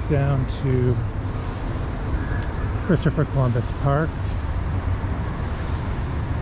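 Traffic hums steadily on a nearby street.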